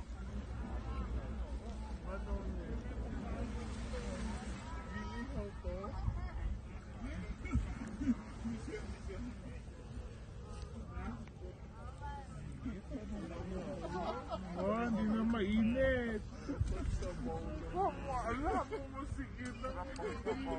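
Small waves lap against rocks on a shore.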